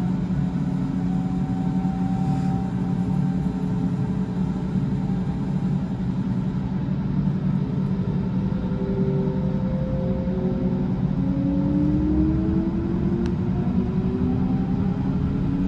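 An electric train rumbles steadily as it pulls away.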